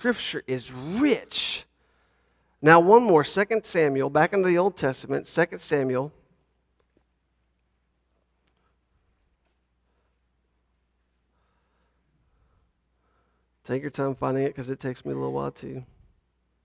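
A man speaks calmly through a microphone, heard over loudspeakers in a large room.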